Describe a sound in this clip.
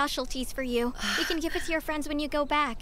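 A young woman answers cheerfully.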